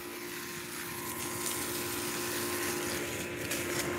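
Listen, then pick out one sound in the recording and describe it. Water sprays from a hose and patters on the ground.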